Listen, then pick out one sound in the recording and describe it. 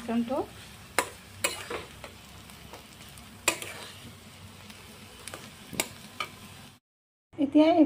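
A metal spatula scrapes and taps against a pan.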